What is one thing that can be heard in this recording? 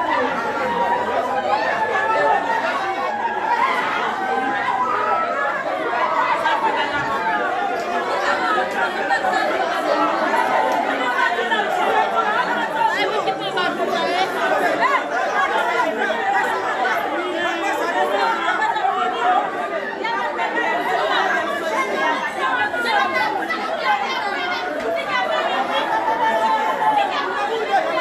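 A large crowd of men and women talks and shouts loudly all at once in an echoing room.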